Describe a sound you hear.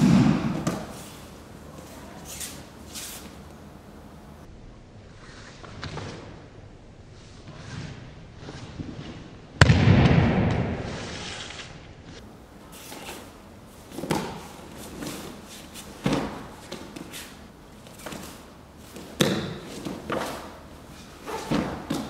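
Bare feet scuff and shuffle on a mat.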